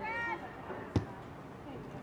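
A soccer ball is kicked with a sharp thud.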